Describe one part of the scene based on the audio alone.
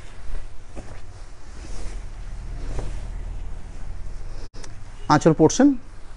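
Fabric rustles and flaps as a man unfolds it.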